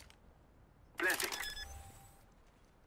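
A bomb keypad beeps as buttons are pressed.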